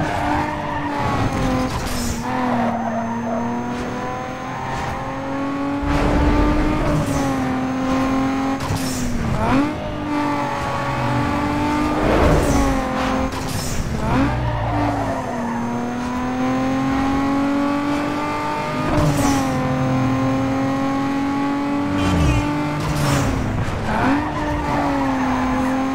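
A V6 sports car engine revs hard through the gears.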